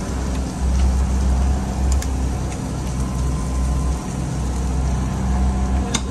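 A spoon scrapes and stirs in a pan.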